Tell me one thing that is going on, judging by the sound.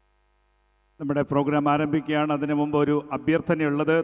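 A choir sings loudly through a sound system in a large hall.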